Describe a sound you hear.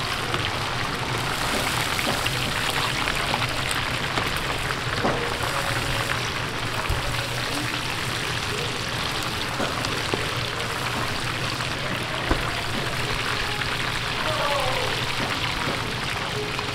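Hot oil sizzles and bubbles steadily.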